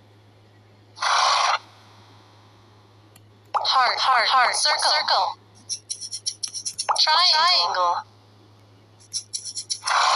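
Bubbles pop with quick, bright plinks.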